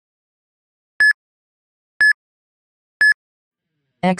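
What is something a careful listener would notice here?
A timer beeps three times, sharp and high.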